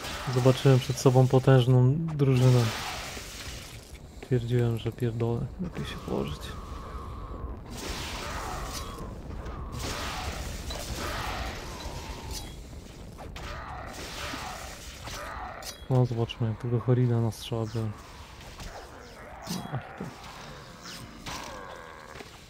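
Magic spells zap and crackle.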